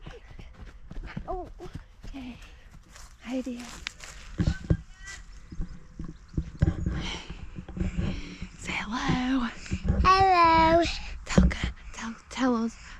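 A young woman talks cheerfully up close.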